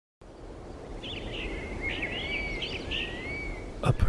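Birds chirp outdoors.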